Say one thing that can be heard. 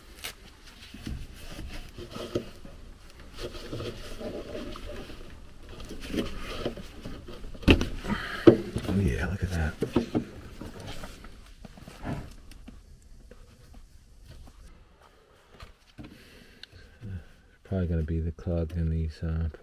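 Plastic parts click and rattle as gloved hands handle wiring.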